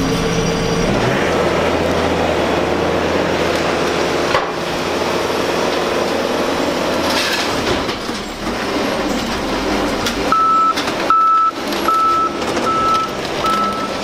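A loader's diesel engine rumbles nearby.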